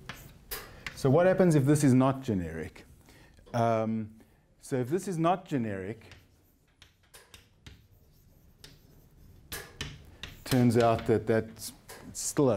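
A middle-aged man speaks in bursts, lecturing calmly in a room with a slight echo.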